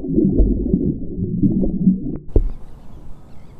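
Water bubbles and rushes underwater with a muffled low rumble.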